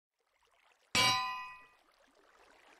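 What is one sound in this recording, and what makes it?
A metal anvil clangs once and rings briefly.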